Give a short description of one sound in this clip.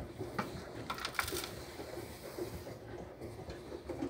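Liquid pours and trickles into a plastic drawer.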